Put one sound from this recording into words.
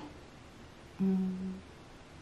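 A young woman hums briefly with her mouth closed.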